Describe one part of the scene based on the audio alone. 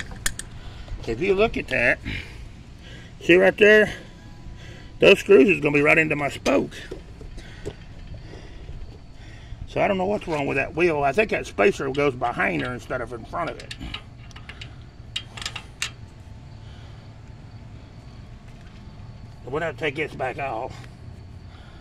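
A man talks close by, explaining in short bursts.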